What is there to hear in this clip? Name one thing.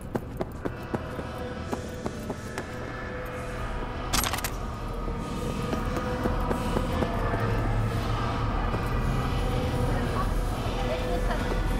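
A crowd murmurs in the distance.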